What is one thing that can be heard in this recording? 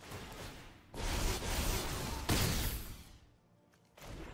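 A magical spell whooshes and swirls.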